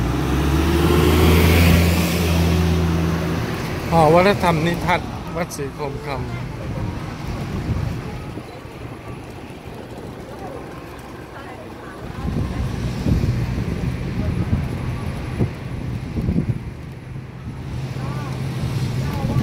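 A vehicle engine hums and rumbles as vans drive past on a road nearby.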